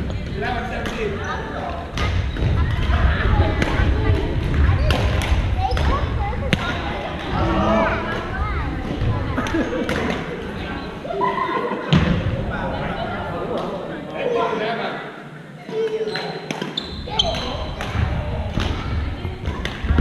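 Paddles strike a ball with sharp pops in a large echoing hall.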